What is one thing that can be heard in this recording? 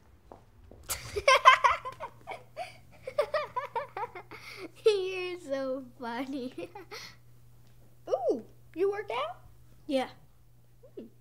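Another young girl answers calmly.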